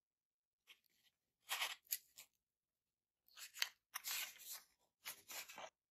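A foam board creaks and rustles as it is handled.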